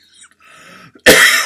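A middle-aged man coughs loudly and close up.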